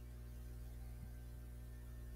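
A computer mouse clicks once.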